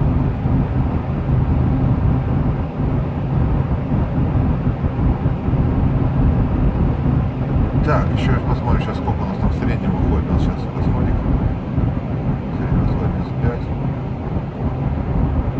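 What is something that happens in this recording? A car engine hums steadily with a low road rumble from inside the cabin.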